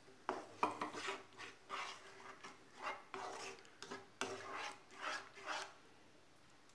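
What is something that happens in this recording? A spatula scrapes and stirs thick sauce in a pan in short strokes.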